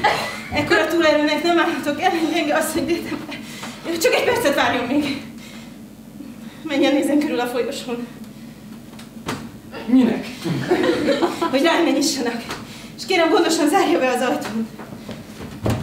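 A woman speaks with animation a short distance away.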